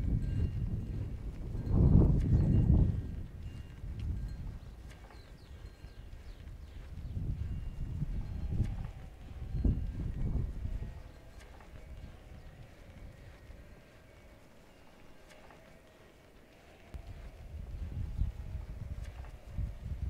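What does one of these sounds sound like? Sheep and goats tear and chew at grass nearby.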